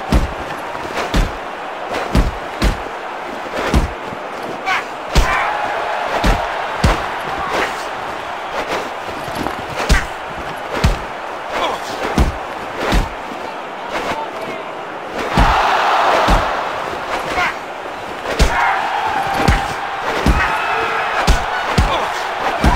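Punches land with heavy, repeated thuds.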